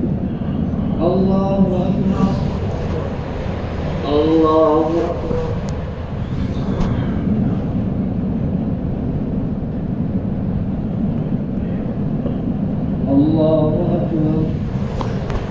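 A man chants in a long, drawn-out voice in a large echoing hall, in short phrases.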